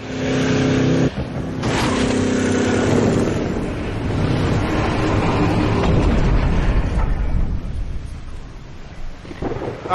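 Rumbling, crashing game sound effects play through small built-in speakers.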